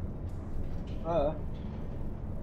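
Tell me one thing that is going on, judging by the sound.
A young man briefly hums into a close microphone.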